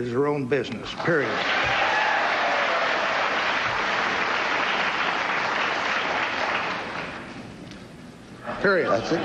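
A large audience applauds loudly in a big hall, then the applause fades.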